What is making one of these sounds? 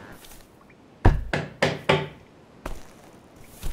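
Building blocks thump into place one after another.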